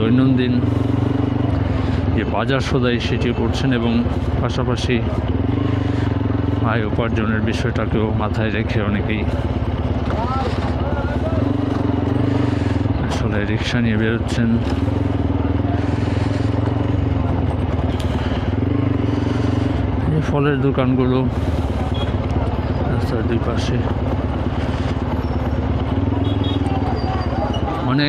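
A crowd of men and women chatter nearby on a busy street.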